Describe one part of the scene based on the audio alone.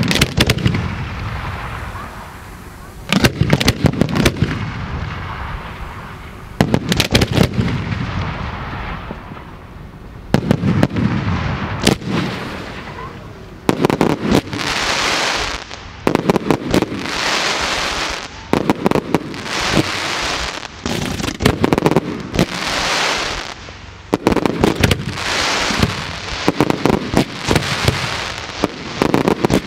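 Fireworks burst overhead with loud bangs and crackling.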